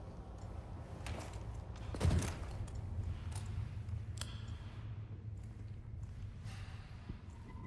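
Boots and hands knock on the rungs of a ladder as someone climbs down.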